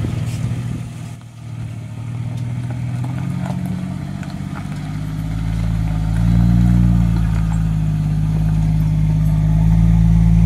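An off-road truck's diesel engine rumbles as it drives slowly closer and passes by.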